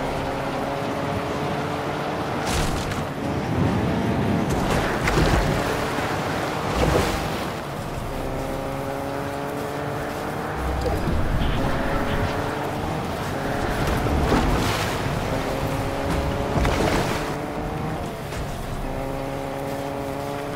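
A car engine hums and revs up and down steadily.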